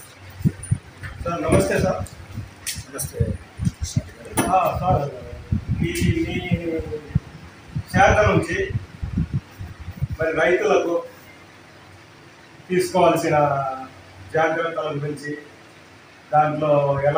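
An elderly man speaks calmly in answer, picked up by a nearby microphone.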